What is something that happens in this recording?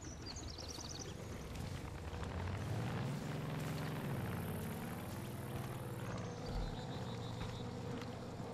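Footsteps crunch on gravel and thud on wooden boards.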